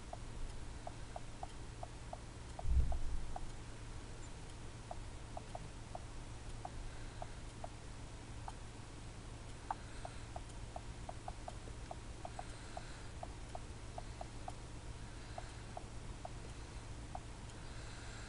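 A phone's keypad gives short soft clicks as keys are tapped.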